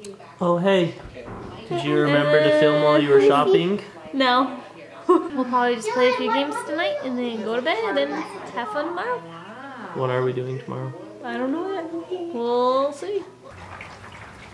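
A young woman talks animatedly and close up.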